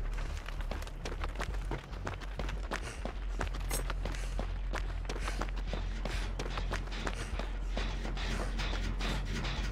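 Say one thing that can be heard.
Footsteps crunch quickly over the ground and then thud on wooden boards.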